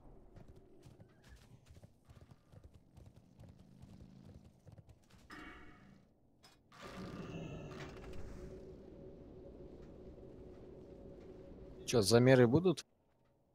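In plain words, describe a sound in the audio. Game battle sound effects clash and thump.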